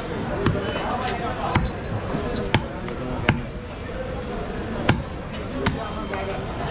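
A cleaver chops down hard on a wooden block with sharp thuds.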